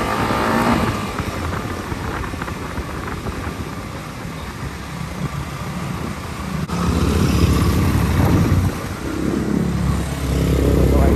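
A motorcycle engine hums and revs while riding.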